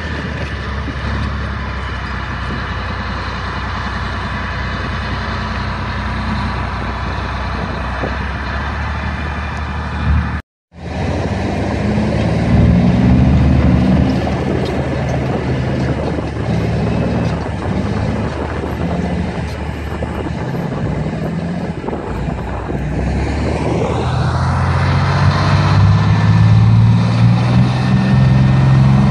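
A heavy tracked vehicle's engine roars nearby.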